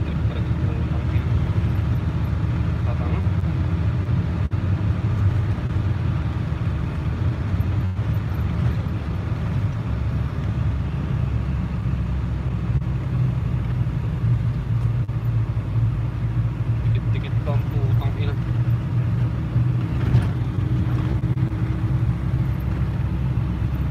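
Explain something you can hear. A large vehicle's engine drones steadily from inside the cab.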